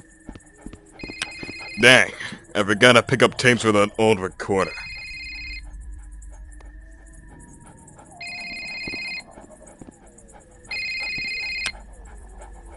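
A phone rings in short repeated bursts.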